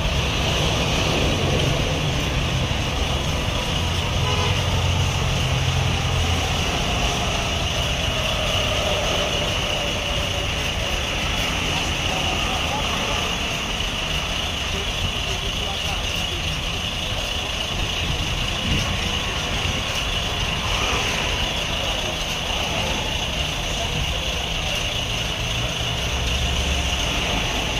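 A diesel engine of a mobile crane idles with a low rumble.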